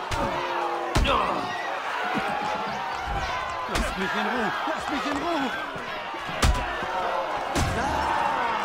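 Fists land on a body with heavy thuds.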